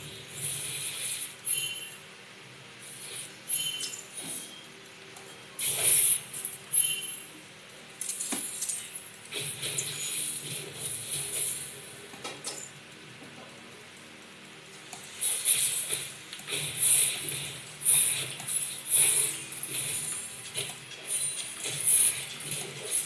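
Game sound effects and music play from a small loudspeaker in bursts.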